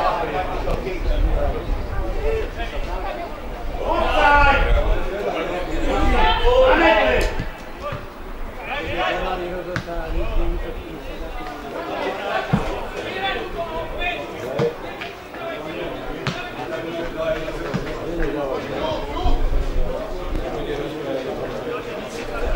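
Men shout across an open sports field.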